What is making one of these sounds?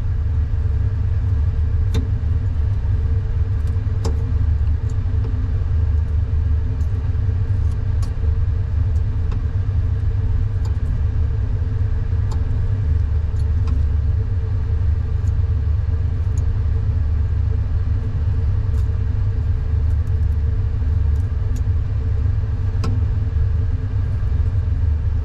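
Metal tweezers tap and scrape on a metal tray.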